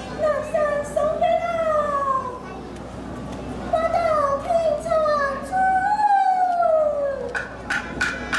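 A woman sings in a high, wavering operatic voice through a microphone.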